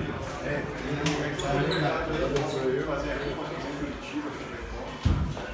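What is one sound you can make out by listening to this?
Young men talk casually nearby.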